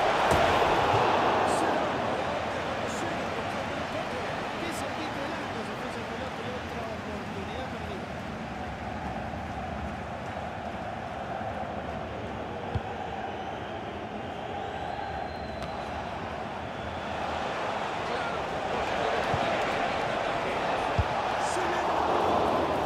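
A large crowd roars steadily, swelling louder at times.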